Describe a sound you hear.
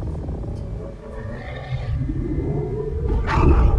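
A creature growls low and deep.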